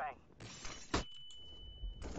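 A stun grenade goes off with a sharp bang.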